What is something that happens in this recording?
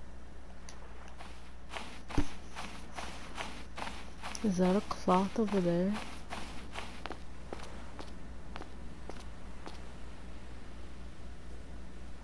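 Footsteps crunch softly on sand.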